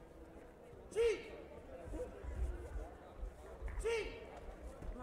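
Kicks thud against body protectors in a large echoing hall.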